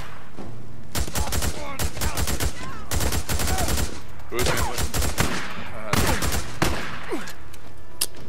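A shotgun fires several loud blasts in quick succession.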